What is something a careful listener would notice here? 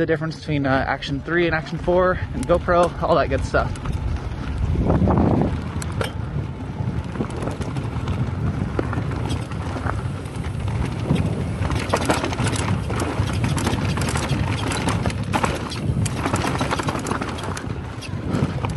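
Bicycle tyres crunch and rattle over rocky dirt.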